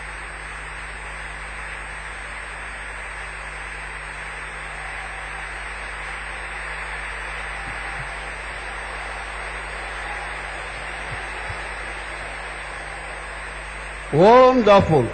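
A large crowd claps and cheers in a big echoing hall.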